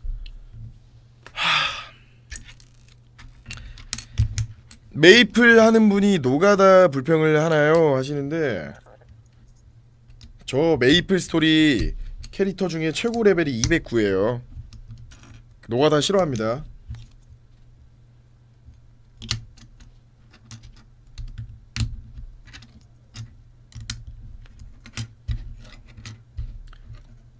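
Plastic toy bricks click and clatter against each other.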